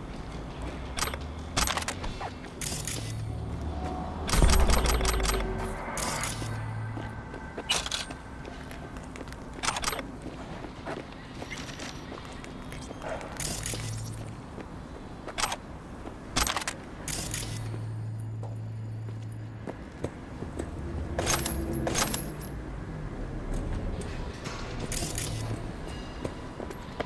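Short chimes and clicks sound as items are picked up.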